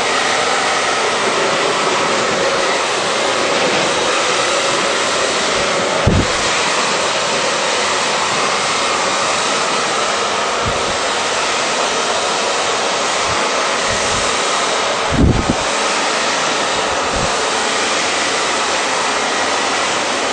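A hair dryer blows with a steady, loud whoosh.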